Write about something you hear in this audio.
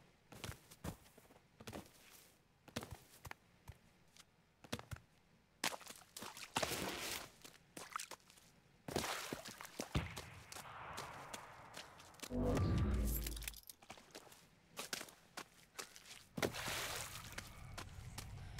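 Footsteps crunch on dirt and gravel at a steady pace.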